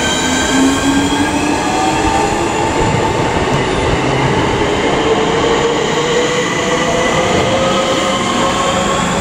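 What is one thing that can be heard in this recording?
A passenger train rolls past close by with a loud rumble and whine.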